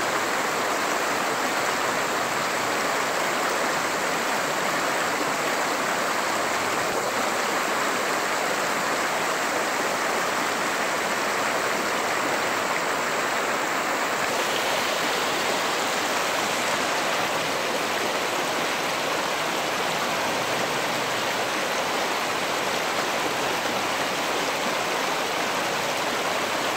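Water splashes around tyres driving through a creek.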